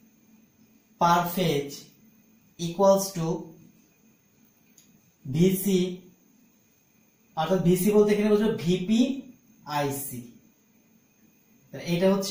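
A man speaks calmly and explains in short phrases, close by.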